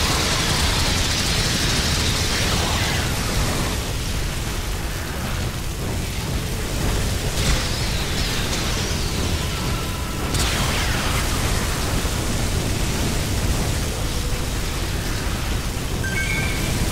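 A weapon fires rapidly and continuously.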